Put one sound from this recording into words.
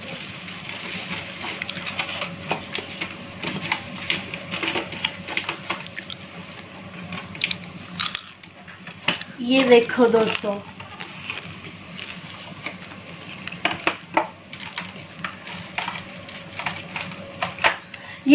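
Paper and plastic packaging rustle and crinkle as it is handled.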